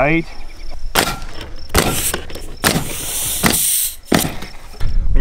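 A pneumatic nail gun fires with sharp bangs.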